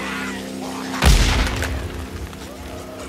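A gunshot fires loudly, followed by a short rumbling echo.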